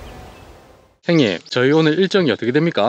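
A young woman asks a question close to a microphone.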